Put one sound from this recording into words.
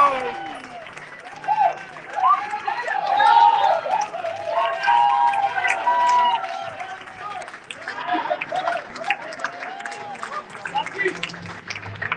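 A crowd of men cheers and talks excitedly nearby.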